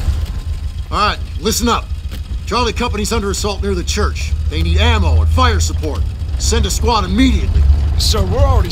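A man gives orders with animation.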